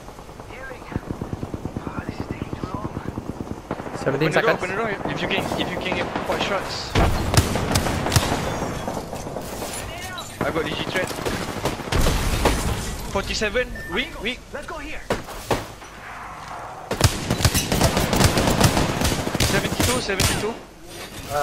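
Rapid gunfire bursts out in quick bursts.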